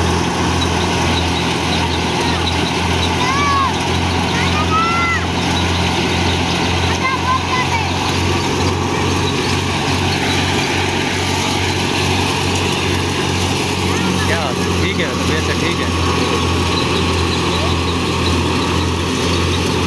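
A threshing machine roars and rattles steadily at close range.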